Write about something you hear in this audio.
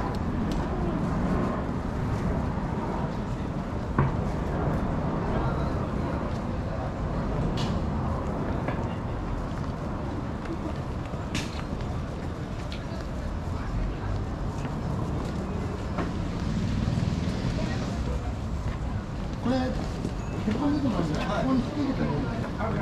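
Footsteps tap on a paved street.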